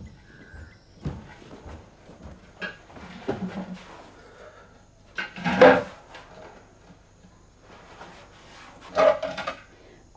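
An elderly man speaks quietly nearby.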